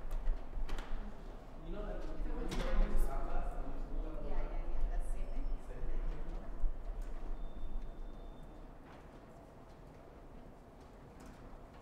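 A suitcase's wheels roll over a hard floor.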